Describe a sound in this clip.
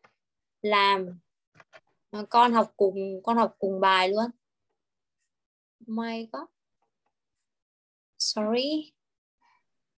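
A young woman speaks with animation through an online call.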